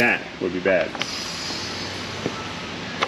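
A machine hisses steadily as air pressure is released.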